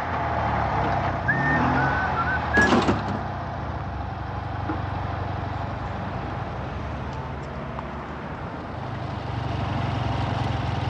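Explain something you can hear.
Car engines rumble steadily in street traffic.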